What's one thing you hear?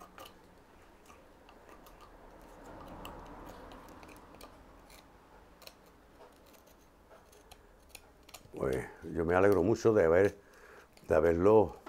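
A hand tool scrapes and clicks against wood.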